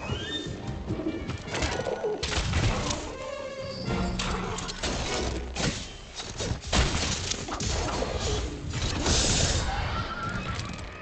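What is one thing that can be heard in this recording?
A large creature roars and screeches.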